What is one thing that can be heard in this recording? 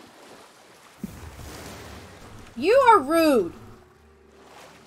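Water splashes and sloshes as a swimmer moves through the sea.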